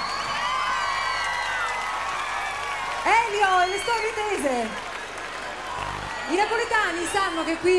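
A huge crowd sings together loudly in the open air.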